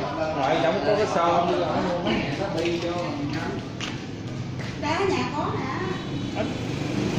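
Several people chat outdoors.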